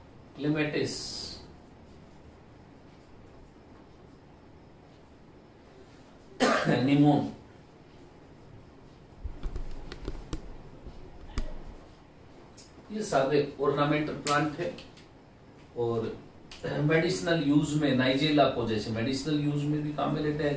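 A middle-aged man speaks calmly in a lecture, close by.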